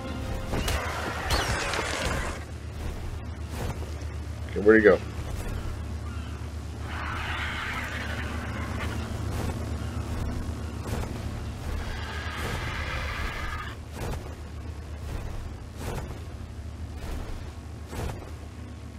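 A large bird's wings beat with heavy, repeated whooshes.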